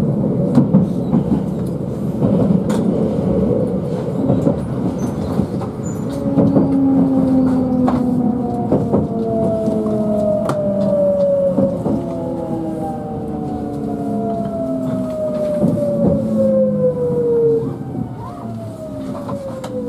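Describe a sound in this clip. A train rumbles steadily as it rolls along the tracks.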